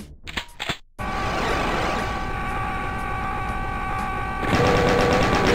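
A large energy weapon fires with a loud roaring blast.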